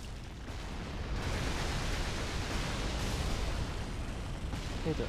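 A blast of frost hisses loudly.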